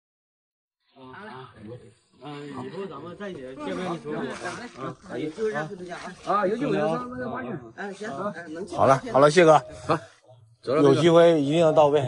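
A middle-aged man talks cheerfully, close by.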